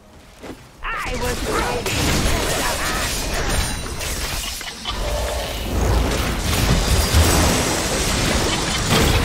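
Magic spells blast and crackle in a fierce fight.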